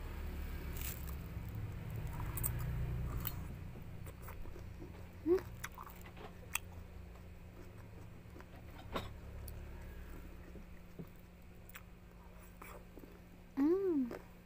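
A young woman chews and slurps juicy fruit close up.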